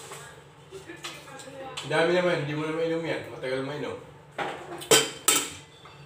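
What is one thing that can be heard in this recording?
A spoon clinks against a metal pot.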